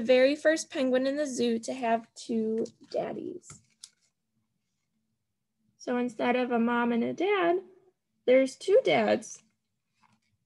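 A young woman reads aloud expressively, close to the microphone.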